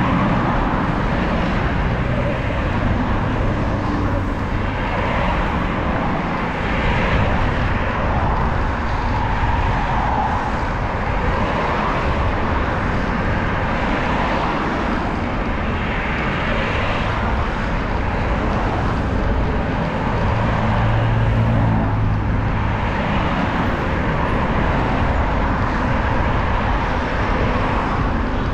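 Wind rushes and buffets steadily, outdoors, while riding along a road.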